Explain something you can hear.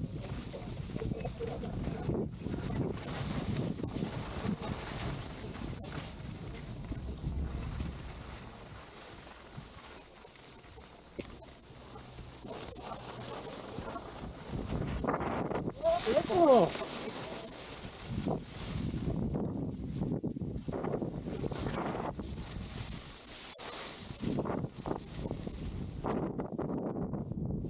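Wind rushes past a moving skier.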